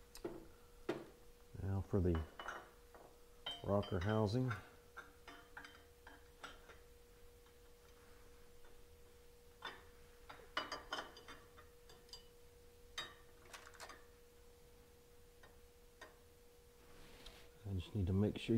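Metal parts clink and tap lightly as they are fitted by hand.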